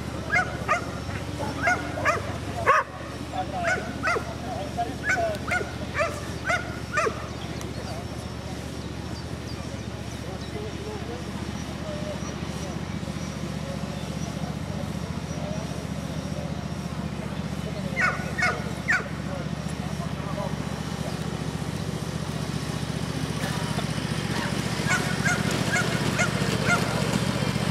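A dog barks in sharp bursts outdoors.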